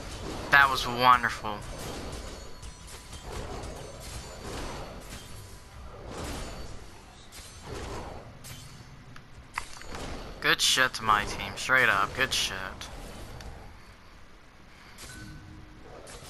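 A magic blast crackles and bursts.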